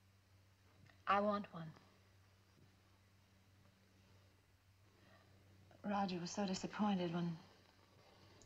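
A woman speaks briefly and calmly.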